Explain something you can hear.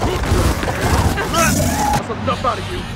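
An explosion booms with a roaring blast.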